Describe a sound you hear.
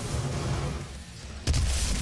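Explosions boom.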